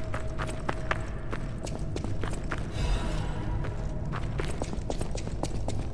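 Footsteps run quickly over gravelly ground.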